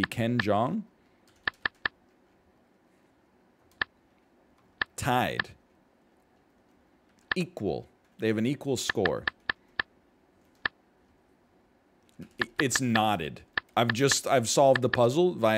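A man talks calmly and thoughtfully into a close microphone, with pauses.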